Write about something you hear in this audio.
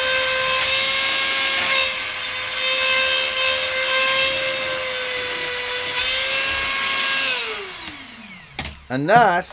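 A small rotary grinder whines steadily as it sharpens a chain, then winds down.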